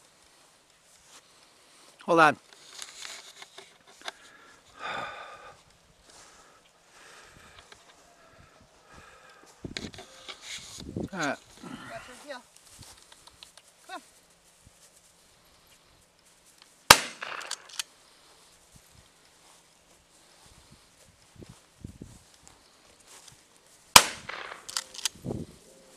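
Footsteps crunch through dry grass outdoors.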